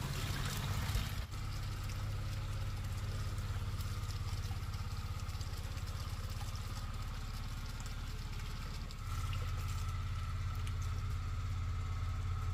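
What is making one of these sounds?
Fruit splashes as it is rinsed in water.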